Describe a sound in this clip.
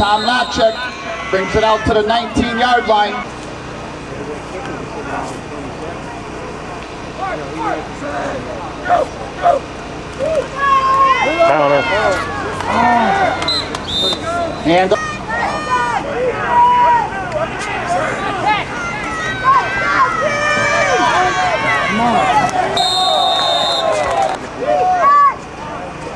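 A crowd of spectators shouts and cheers outdoors nearby.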